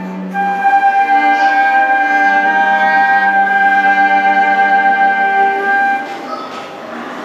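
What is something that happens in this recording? A violin plays an accompaniment.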